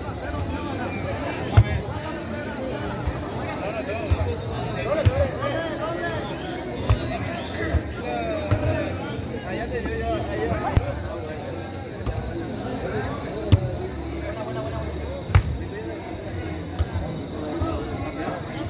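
A crowd of spectators chatters steadily outdoors.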